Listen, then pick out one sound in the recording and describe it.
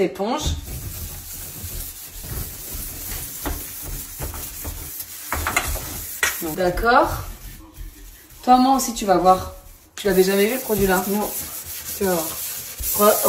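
A sponge scrubs a steel sink with a soft rubbing sound.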